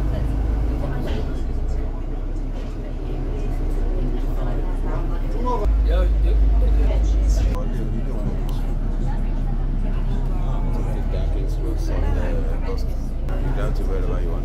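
A bus engine rumbles steadily underneath.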